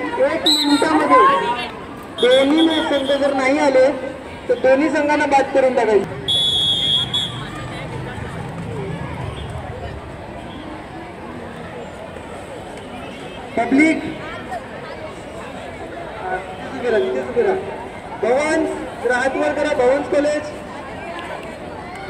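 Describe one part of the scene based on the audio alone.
A crowd of boys murmurs in the background outdoors.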